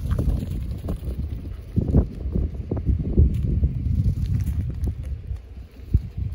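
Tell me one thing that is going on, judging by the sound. A duck pecks grain from a hand with quick taps.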